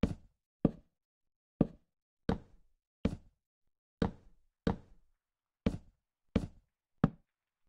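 Wooden blocks thud into place one after another at an uneven pace.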